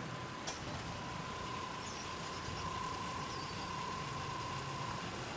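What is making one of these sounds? A car engine hums quietly as a car rolls slowly past.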